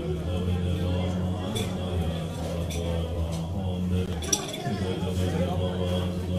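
An elderly man chants in a deep, steady voice through a loudspeaker.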